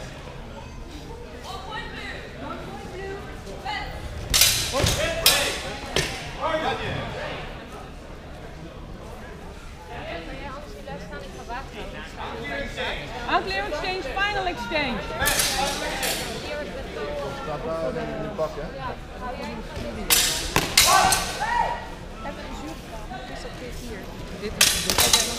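Several people murmur and talk in the background of a large echoing hall.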